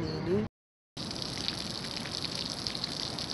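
A small fountain sprays water nearby.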